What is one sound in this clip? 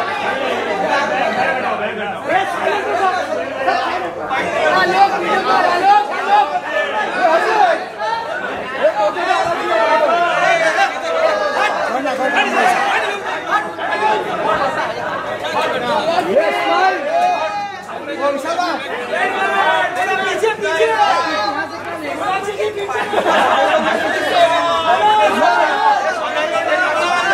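A crowd of men shouts and calls out excitedly close by.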